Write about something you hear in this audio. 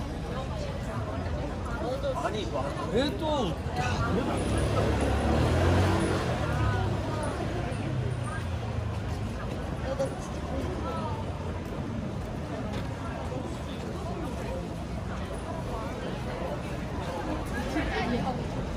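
Many people chatter nearby and in the distance, outdoors in a busy street.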